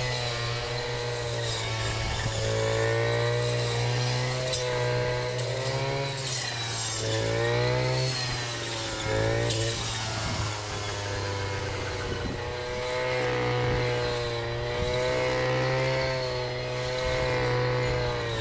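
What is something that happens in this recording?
Tall grass swishes and rips against the trimmer line.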